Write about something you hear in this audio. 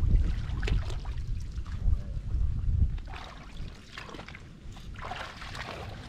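Feet squelch and splash through shallow mud.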